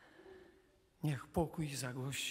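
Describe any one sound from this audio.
An elderly man speaks calmly through a microphone in an echoing space.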